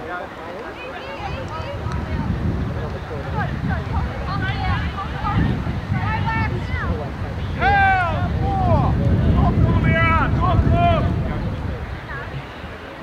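Wind rumbles past outdoors.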